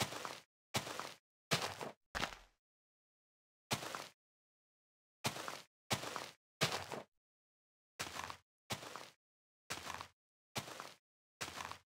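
Blocks of dirt are dug out with short crunching bursts, one after another.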